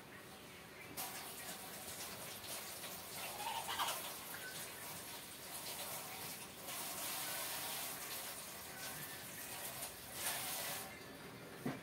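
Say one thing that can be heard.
Water runs from a tap and splashes in a sink.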